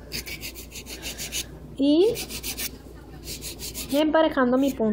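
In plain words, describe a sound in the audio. A nail file rasps back and forth on a fingernail in quick strokes.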